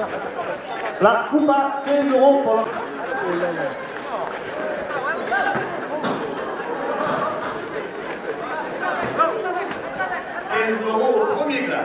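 A crowd cheers and shouts as a bull charges.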